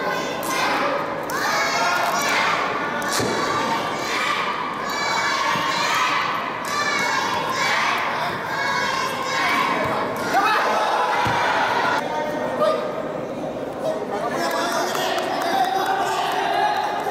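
A football is dribbled and tapped on a hard indoor court.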